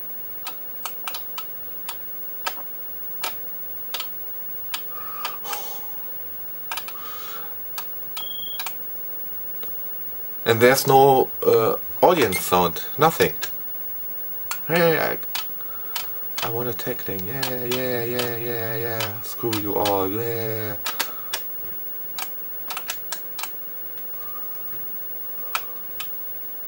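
Short electronic clicks sound as a ball is kicked in a computer game.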